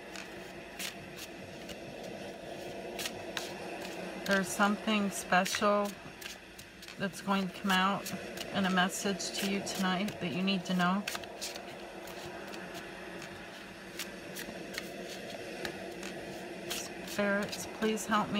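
Playing cards are shuffled by hand, with soft riffling and tapping.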